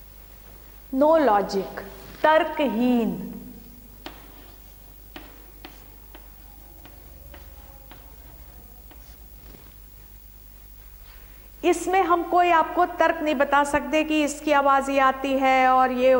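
A middle-aged woman speaks clearly and with animation, as if teaching.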